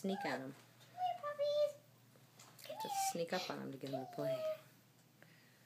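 Young goldendoodle puppies whine and yelp.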